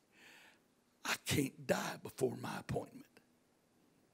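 A middle-aged man speaks loudly and with animation through a microphone and loudspeakers.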